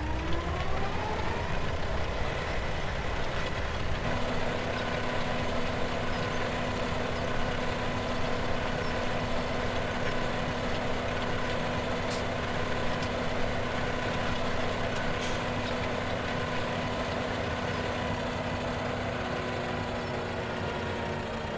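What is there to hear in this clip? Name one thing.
A rotary tiller churns soil with a steady whir.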